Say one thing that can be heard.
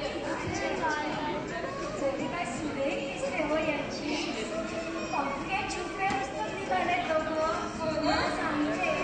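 A man speaks with animation, heard through a microphone in a large hall.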